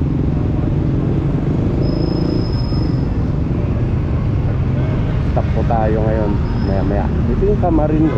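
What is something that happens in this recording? Traffic rumbles steadily along a busy street outdoors.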